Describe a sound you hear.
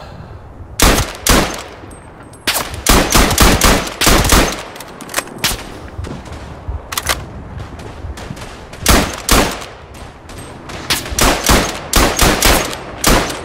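A rifle fires loud single shots close by.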